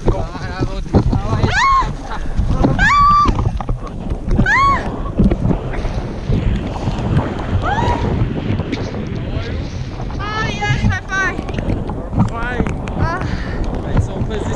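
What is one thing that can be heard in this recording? A young woman screams and shrieks with excitement.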